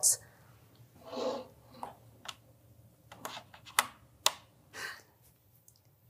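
A plug clicks into a port.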